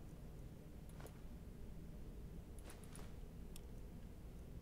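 Soft menu clicks sound now and then.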